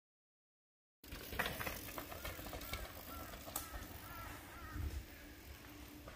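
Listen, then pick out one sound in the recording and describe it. Bicycle tyres roll and crunch over dry forest ground.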